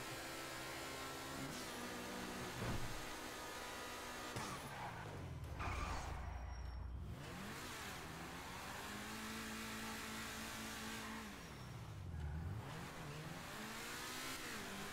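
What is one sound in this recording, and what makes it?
A sports car engine roars and revs up and down as it races.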